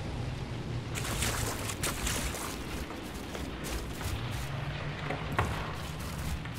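Footsteps run quickly through rustling undergrowth.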